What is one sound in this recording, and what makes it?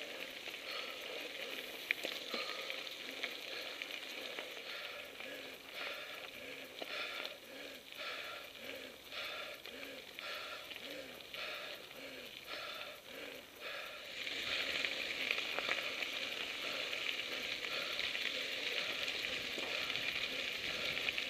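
Bicycle tyres crunch over a gravel road.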